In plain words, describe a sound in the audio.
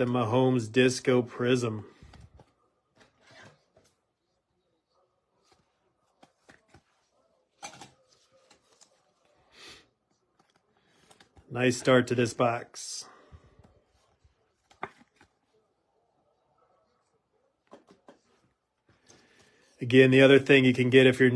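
A thin plastic sleeve crinkles and rustles as a card slides in.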